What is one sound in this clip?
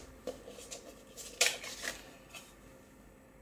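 A disc snaps out of a plastic case with sharp clicks.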